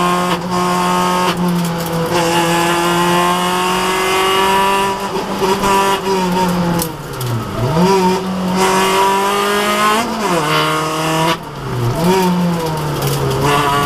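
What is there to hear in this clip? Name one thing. A rally car engine roars loudly from inside the car, its pitch rising and dropping with gear changes.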